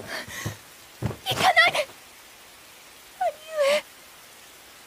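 A young boy pleads tearfully, close by.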